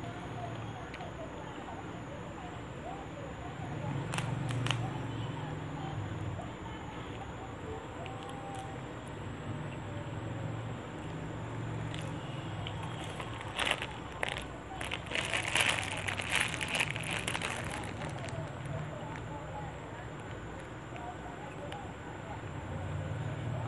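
Fresh leaves rustle and snap as they are picked from a bunch.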